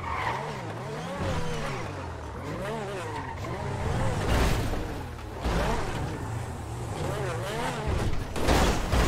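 A racing car engine revs hard, rising and falling in pitch.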